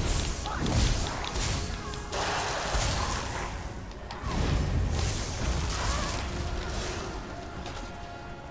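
Magic spells crackle and blast in a fight.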